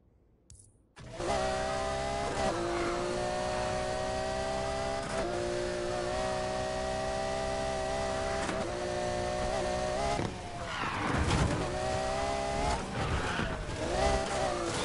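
A sports car engine roars at high revs, shifting up through the gears.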